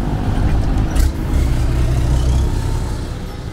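A heavy truck rumbles past close by.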